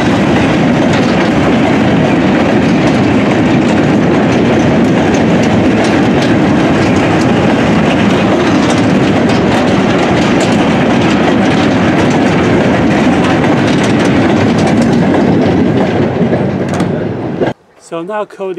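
Freight wagons rattle and clatter past on the rails, close by.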